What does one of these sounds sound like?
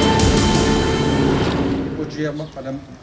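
A propeller plane drones loudly overhead.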